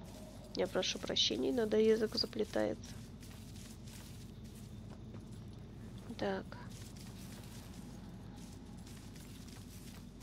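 Footsteps tread slowly on soft ground.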